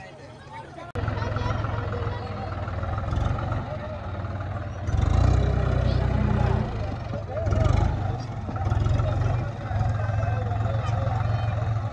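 A tractor engine rumbles loudly and revs up and down.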